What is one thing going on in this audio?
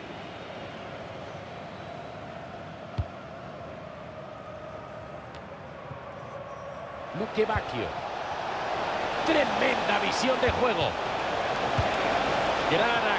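A large stadium crowd roars steadily and swells louder.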